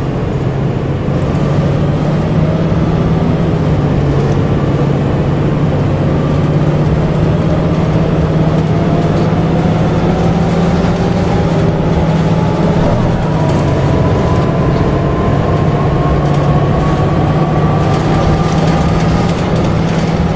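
An automatic transmission whines, rising in pitch.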